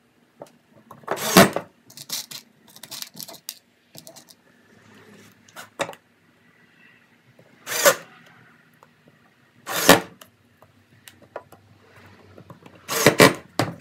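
A cordless drill whirs in short bursts, driving screws into wood.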